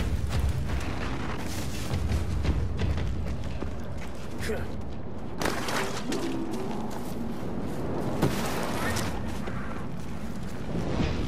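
Footsteps crunch over snow and dry ground.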